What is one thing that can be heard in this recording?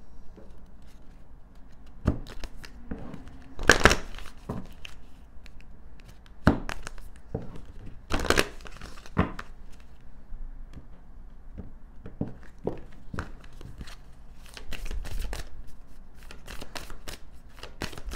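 Cards shuffle and flick against each other close by.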